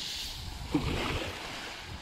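Small waves lap gently against a pebble shore.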